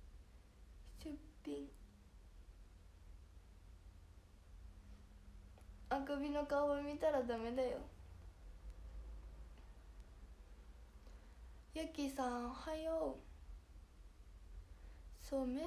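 A young woman speaks softly and casually, close to a microphone.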